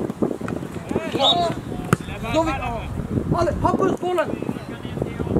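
Young boys shout and call to each other outdoors.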